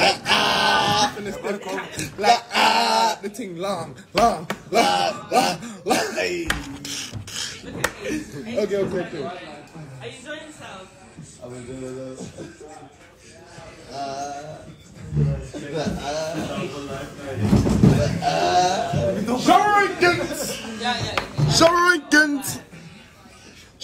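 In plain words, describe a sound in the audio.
A young man talks and laughs loudly with animation close by.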